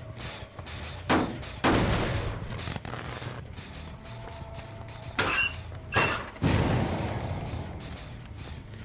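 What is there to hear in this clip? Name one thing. A machine clangs and rattles loudly as it is kicked and broken.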